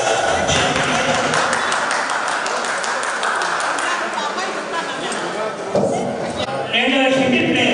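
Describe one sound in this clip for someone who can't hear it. A crowd of men and women chatter in a low murmur.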